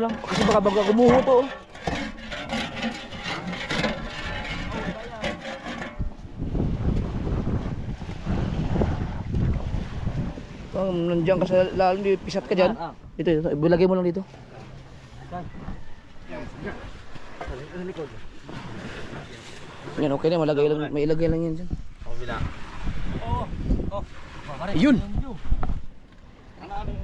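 Men talk to each other close by, outdoors.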